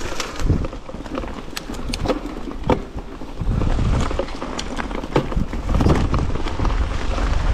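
Bicycle tyres crunch over dry leaves and twigs.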